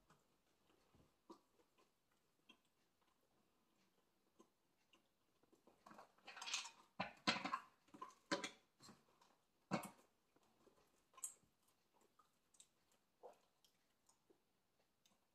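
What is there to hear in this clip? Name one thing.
A man chews food with his mouth closed, close by.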